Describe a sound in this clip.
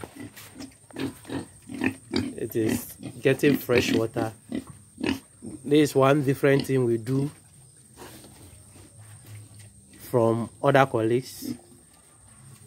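Young pigs grunt while feeding at a trough.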